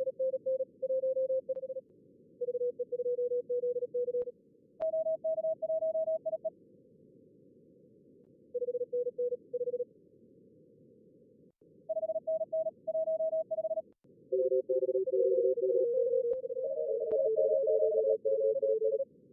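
Morse code beeps in short bursts over a radio receiver.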